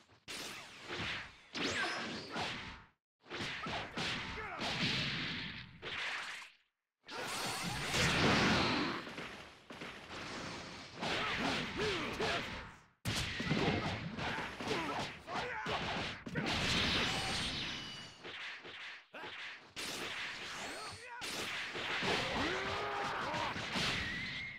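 Energy blasts whoosh and crackle in bursts.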